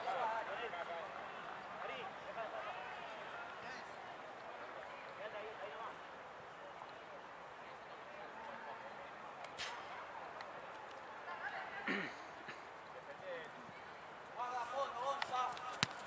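Boys and young men talk and call out outdoors.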